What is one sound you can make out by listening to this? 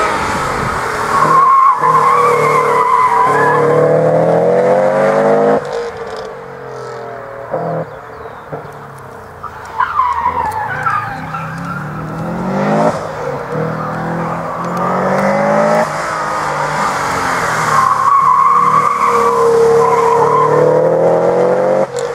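A car engine revs hard and drops, rising and falling in pitch.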